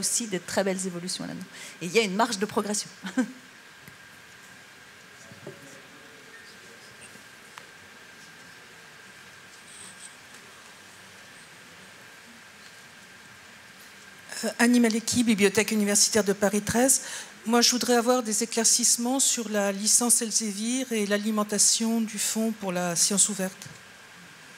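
A woman speaks calmly into a microphone, her voice carried over loudspeakers in a large room.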